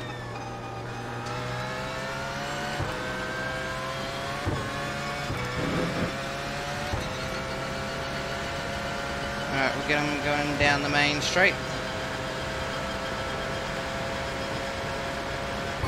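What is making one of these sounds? A racing car engine roars and climbs in pitch, dropping briefly at each gear change.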